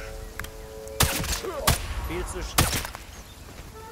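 A rifle fires several loud, sharp shots that echo.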